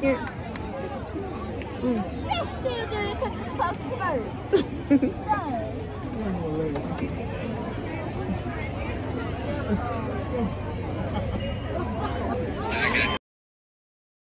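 A large outdoor crowd chatters and cheers in the distance.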